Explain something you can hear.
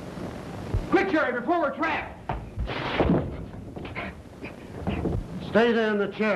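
A man shouts and groans loudly up close.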